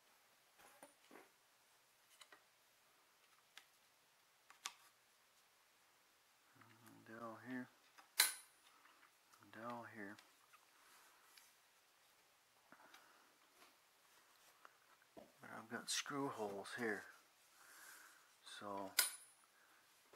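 Small parts click and knock as hands handle and fit them together.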